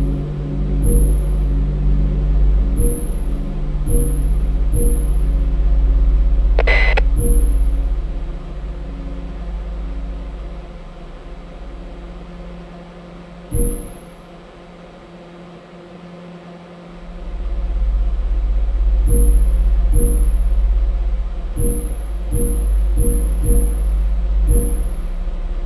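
A monitor clicks sharply each time its view switches.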